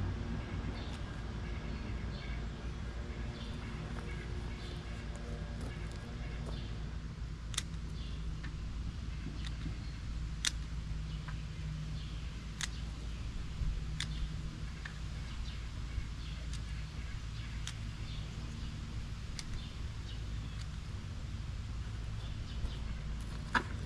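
A man's hands dig and rustle in bark mulch.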